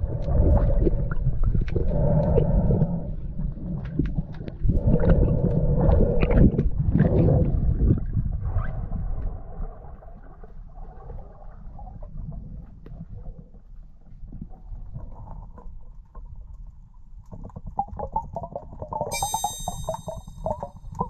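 Water rushes and gurgles around the recorder, heard muffled underwater, loud at first and then quieter.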